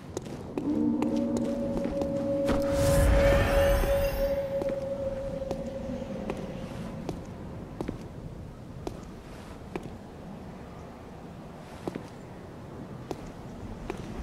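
Footsteps tap on stone as a figure runs.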